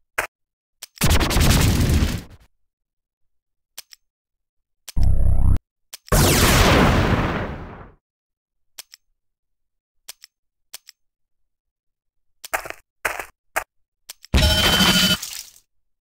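Weapons fire and blasts go off in short, loud bursts.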